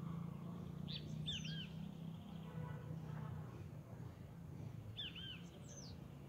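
A bird chirps in short high calls.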